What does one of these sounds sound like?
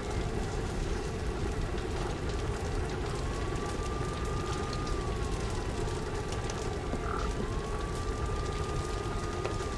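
A flamethrower roars, spraying fire.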